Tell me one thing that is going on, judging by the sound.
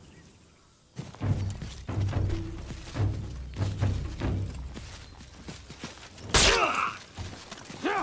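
Swords clash and ring with metal blows.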